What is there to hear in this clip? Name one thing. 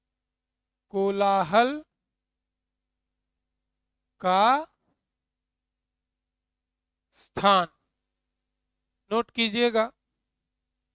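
A man speaks in short bursts, close and clear, as if teaching.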